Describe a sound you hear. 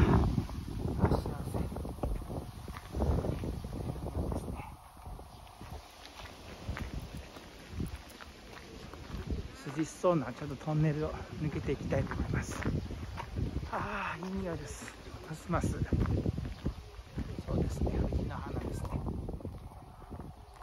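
Men and women chat at a distance outdoors.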